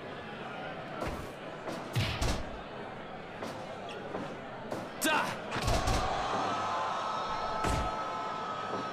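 Heavy bodies slam onto a wrestling mat with dull thuds.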